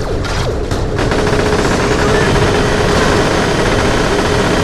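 Guns fire in rapid bursts with a loud, dense roar.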